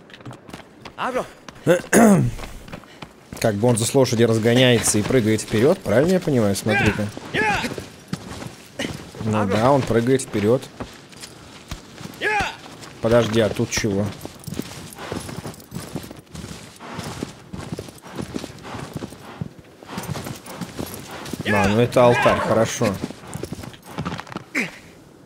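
A young man talks animatedly into a microphone, close by.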